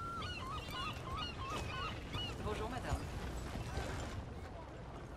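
A horse-drawn wagon rolls past, rumbling.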